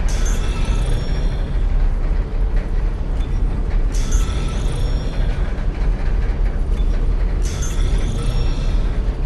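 Soft electronic menu chimes ring out now and then.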